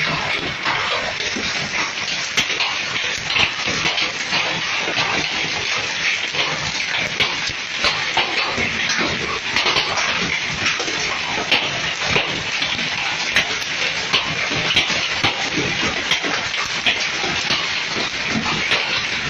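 Heavy rain hisses steadily outdoors.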